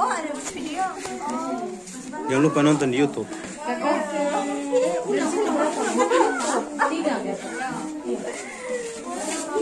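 Several women chatter and talk nearby.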